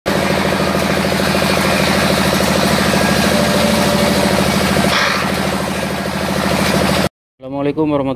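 A machine motor hums and whirs steadily.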